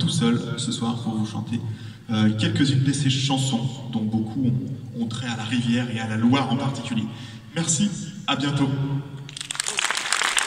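A performer plays music on a distant stage.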